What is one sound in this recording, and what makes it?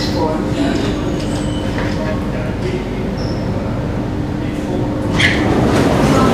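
An electric metro train hums as it slows to a stop.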